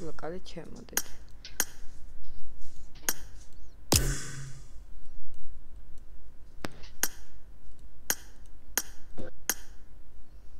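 Short menu clicks sound now and then.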